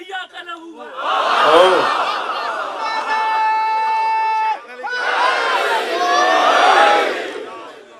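A crowd of men chant and shout together.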